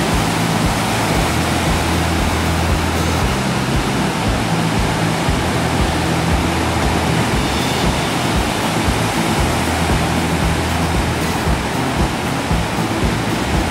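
Waves break and wash up onto a beach.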